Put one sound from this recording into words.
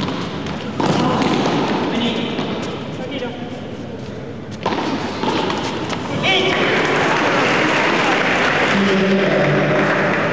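A ball is struck back and forth with sharp smacks of paddles.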